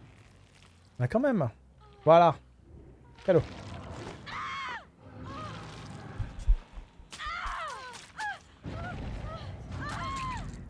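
A young woman screams in pain.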